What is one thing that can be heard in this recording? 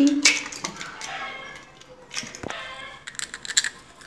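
An egg cracks against a metal bowl.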